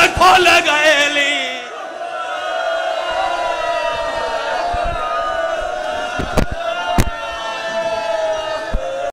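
Men beat their chests with their hands in thuds.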